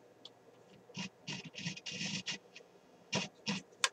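A control knob clicks as it is turned.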